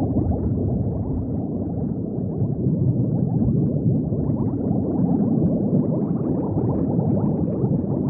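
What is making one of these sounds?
Bubbles gurgle and burble steadily underwater.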